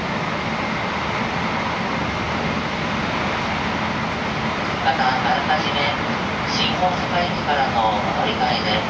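A train rumbles and hums steadily while running.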